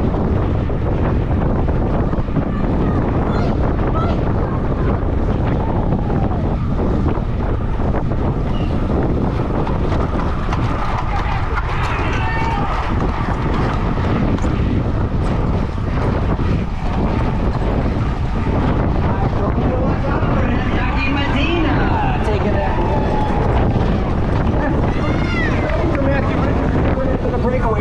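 Wind rushes loudly past a fast-moving bicycle outdoors.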